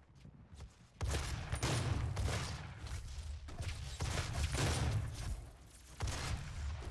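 A shotgun fires in rapid, loud blasts.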